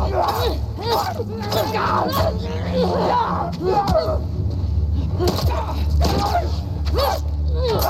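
Heavy blows thud in a close scuffle.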